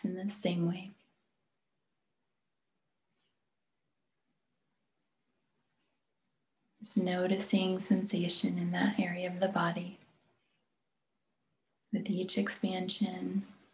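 A woman speaks calmly and clearly, close to a microphone, with pauses between phrases.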